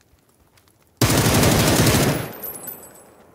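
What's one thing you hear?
A rifle fires a loud, rapid burst.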